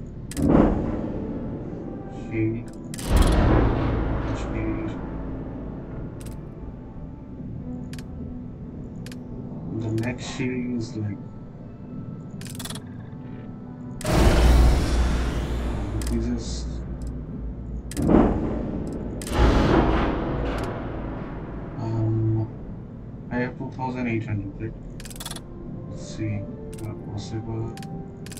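Soft electronic menu clicks and whooshes sound now and then.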